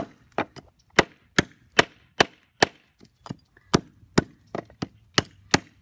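A hatchet chops into wood with sharp, steady knocks.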